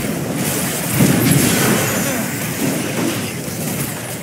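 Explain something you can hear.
Game spells crackle and burst during a fight.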